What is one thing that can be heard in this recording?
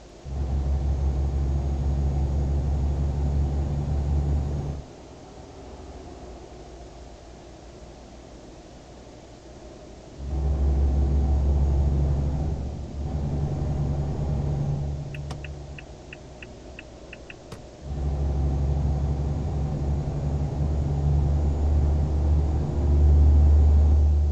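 A truck engine drones low and steady, rising and falling as the driver accelerates.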